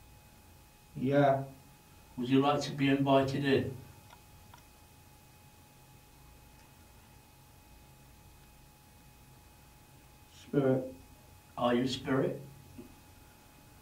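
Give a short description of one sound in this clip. A man speaks quietly in short bursts close by.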